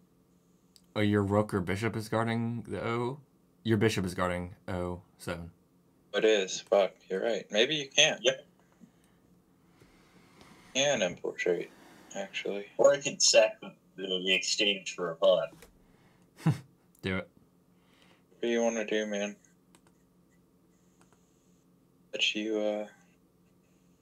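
A young man talks calmly and thoughtfully into a close microphone, with pauses.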